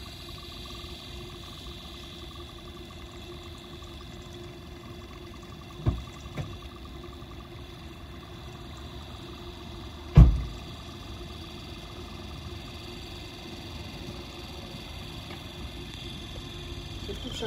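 Liquid gurgles through a hose into a bottle.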